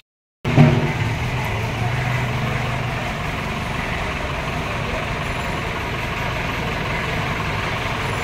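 A truck engine rumbles steadily outdoors.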